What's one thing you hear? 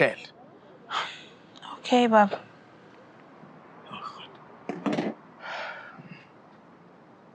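A woman speaks quietly on a phone.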